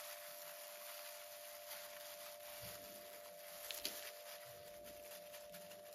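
Hands press and rustle soil in a plastic pot.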